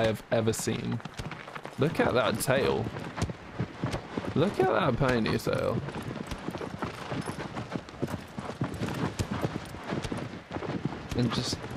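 A horse's hooves gallop steadily over the ground.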